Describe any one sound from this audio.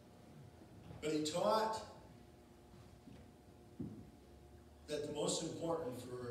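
A man speaks slowly and solemnly through a microphone in a large echoing hall.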